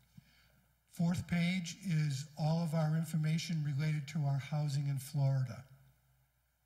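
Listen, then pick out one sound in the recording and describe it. A middle-aged man speaks over a microphone in a large room.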